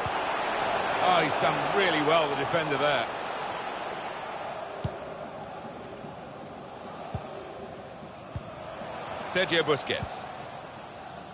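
A large stadium crowd murmurs and roars steadily in the distance.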